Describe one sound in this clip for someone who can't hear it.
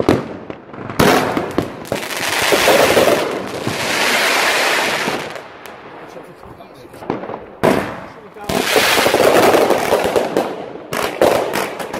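A firework fountain hisses and roars.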